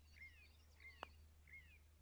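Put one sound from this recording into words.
A golf club taps a ball with a light click.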